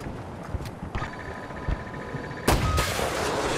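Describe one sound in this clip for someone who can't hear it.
A missile launcher beeps steadily as it locks on.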